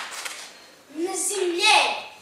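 A young boy speaks.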